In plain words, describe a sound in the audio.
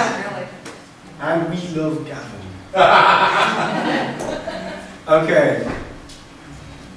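A man speaks in a room with some echo, pausing between phrases.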